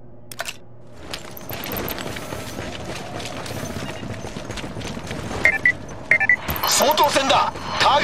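A busy video game battle plays with loud noise and bangs.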